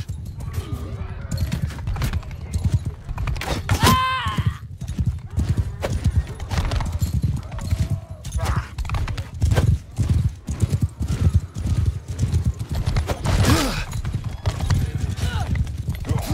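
Heavy footsteps thud quickly over ground.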